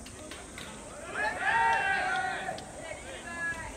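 A group of young men shout together outdoors.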